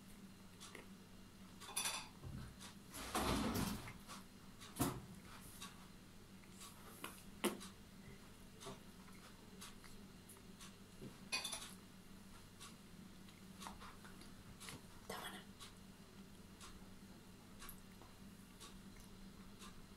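A young boy chews and smacks his lips softly.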